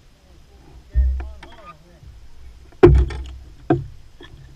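Items knock and thump against a boat's deck close by.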